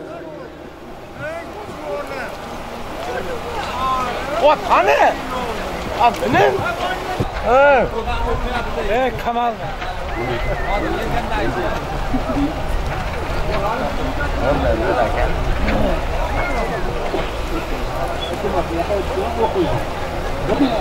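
A large crowd of men shouts and calls out outdoors.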